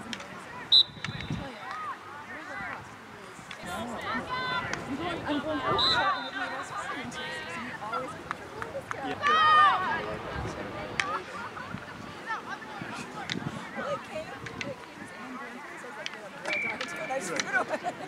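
Hockey sticks clack against a ball and each other.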